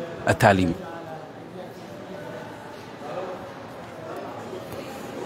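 Men and women murmur in conversation nearby.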